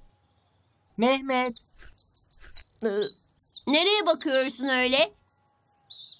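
A young boy speaks cheerfully up close.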